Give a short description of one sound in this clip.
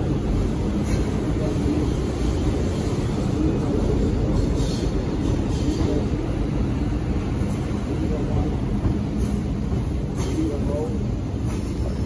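A train rumbles along the tracks close by.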